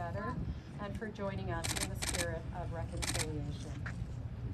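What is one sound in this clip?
A woman speaks outdoors, a little way off.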